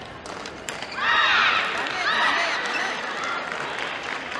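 Players shout with excitement in a large echoing hall.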